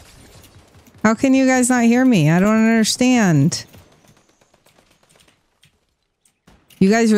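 A young woman speaks in a sing-song voice close to a microphone.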